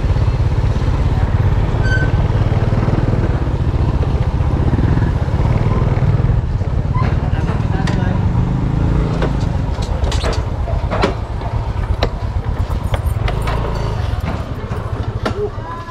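A scooter engine runs with a low, steady rumble.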